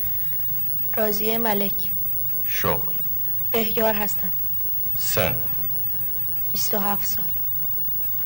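A woman speaks in short, tense phrases close by.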